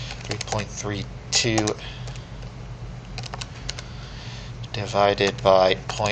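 Calculator buttons click as they are pressed.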